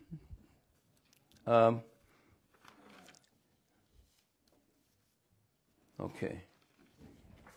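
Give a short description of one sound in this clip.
An elderly man speaks calmly and slowly, close by.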